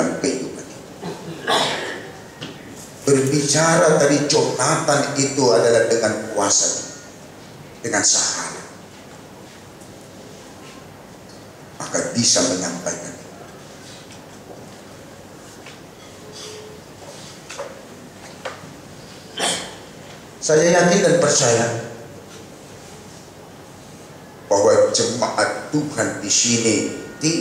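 A middle-aged man preaches with animation through a microphone, pausing between phrases.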